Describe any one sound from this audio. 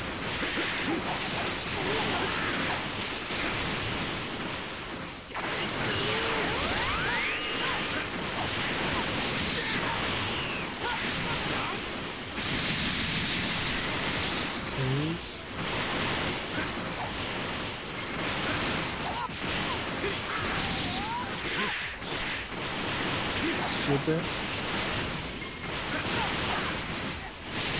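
Energy blasts and punches crash and boom in a fast fight.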